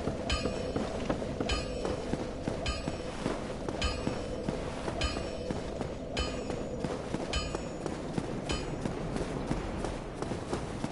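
Metal armor jingles with each stride.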